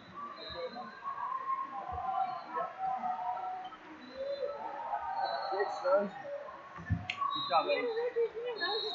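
Many people chatter and call out in a large echoing hall.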